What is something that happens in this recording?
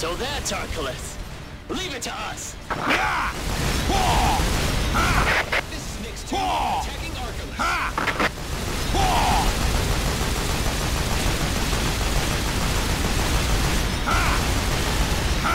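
Guns fire in rapid bursts with loud blasts.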